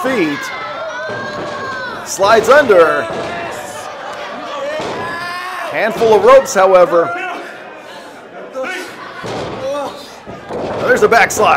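A wrestler's body slams onto the ring mat with a heavy thud.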